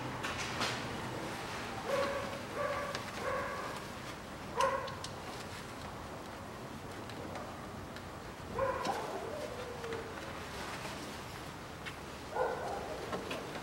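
Metal parts clink and knock as hands work on an engine.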